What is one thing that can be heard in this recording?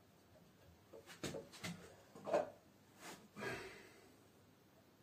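A heavy metal weight knocks and clunks against a wooden block.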